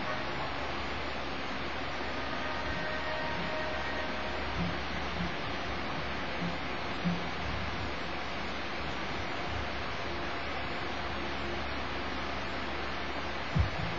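A video game's sounds play through a television speaker, with a steady low rumble.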